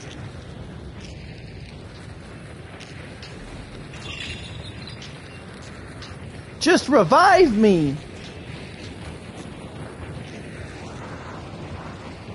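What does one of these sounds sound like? Flames crackle and roar nearby.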